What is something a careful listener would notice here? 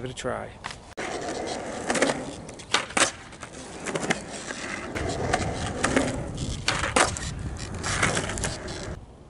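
Skateboard wheels roll on concrete.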